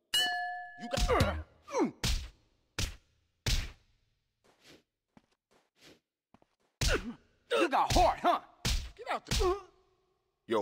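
Punches thud against a body in quick blows.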